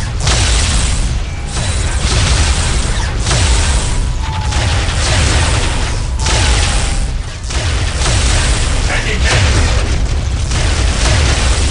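Guns fire in rapid rattling bursts.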